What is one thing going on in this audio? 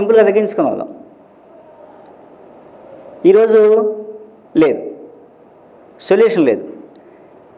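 A man speaks into a microphone in short bursts, with pauses between.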